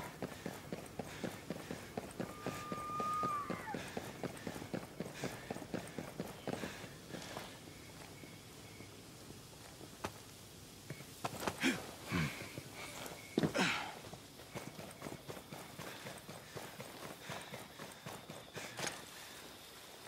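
Boots thud quickly as a soldier runs.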